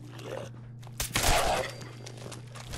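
A rifle fires a short burst of shots.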